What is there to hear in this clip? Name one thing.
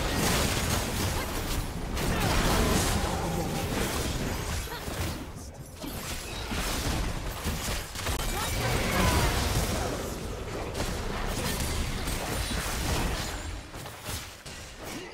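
Spell blasts and sword clashes of a fantasy battle crackle and boom.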